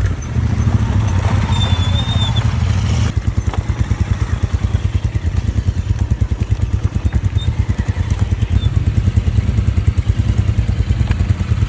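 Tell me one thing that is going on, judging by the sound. A motorcycle engine rumbles with a deep, rapid thumping.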